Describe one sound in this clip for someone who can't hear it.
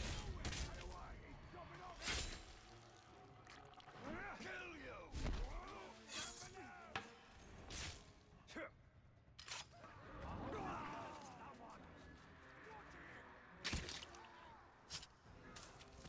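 Blades slash and strike in a fight with sharp impacts.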